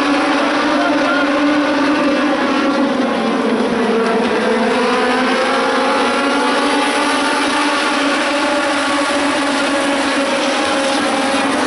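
Many race car engines roar loudly and steadily.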